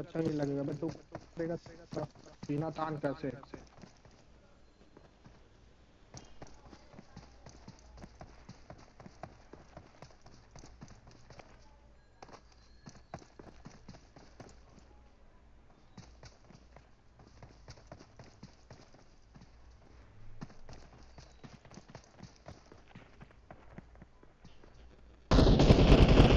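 Game footsteps run on hard ground.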